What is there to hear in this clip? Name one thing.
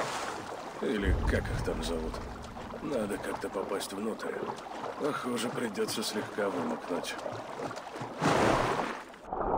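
Water splashes as a swimmer paddles along the surface.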